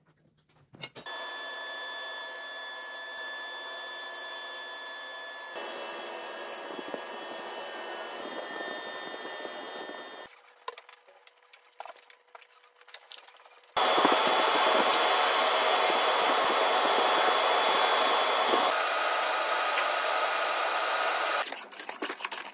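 A sliding table saw cuts through a wood panel.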